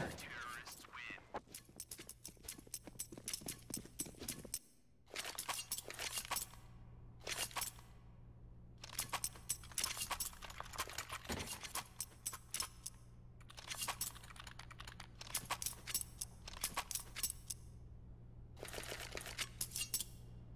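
A knife twirls with quick metallic clicks.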